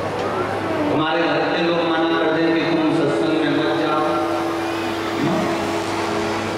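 A man sings in a sustained chant through a microphone.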